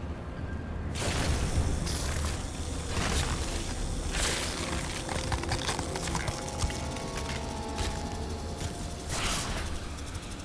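A creature shrieks harshly.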